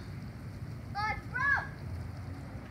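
A young boy shouts excitedly nearby.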